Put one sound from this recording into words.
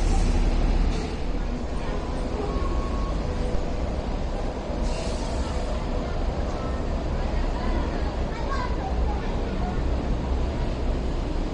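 A train rolls away into the distance, its rumble fading.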